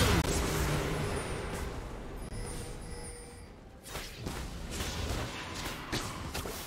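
Fantasy game combat sounds crackle and clash.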